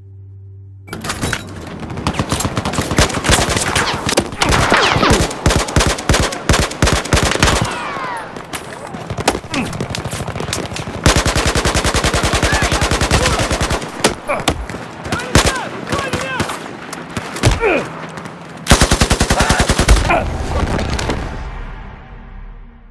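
An assault rifle fires rapid bursts in a video game.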